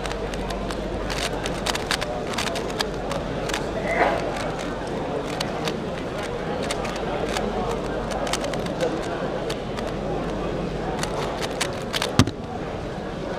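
A plastic puzzle cube clicks rapidly as it is twisted by hand.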